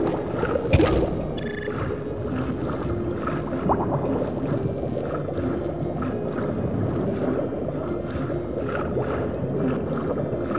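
Bubbles gurgle softly underwater.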